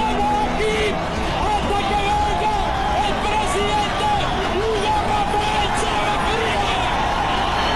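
A man shouts forcefully into a microphone over a loudspeaker.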